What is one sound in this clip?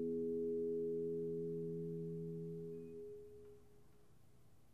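Women sing a held final chord that fades out.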